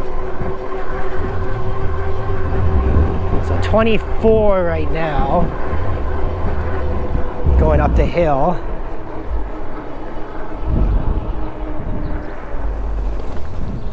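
Wind buffets and rumbles past a moving bike rider.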